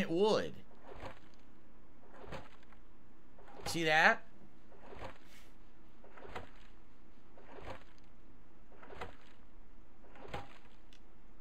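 An axe chops into wood with regular blows.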